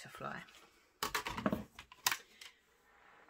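A hard plastic block clacks and taps on a table.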